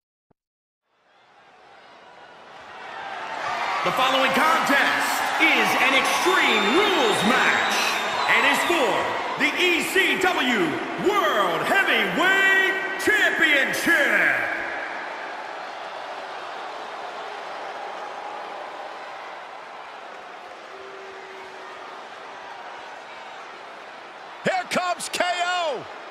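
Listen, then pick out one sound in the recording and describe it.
A crowd cheers and roars in a large echoing arena.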